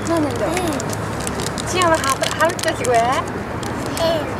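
A young woman speaks softly and playfully, close by.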